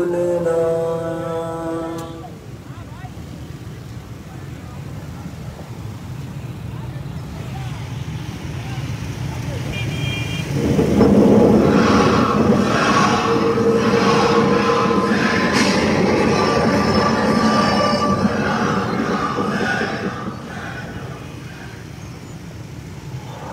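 Many motorcycle engines rumble and drone together outdoors.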